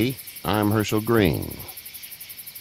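An elderly man speaks calmly and warmly.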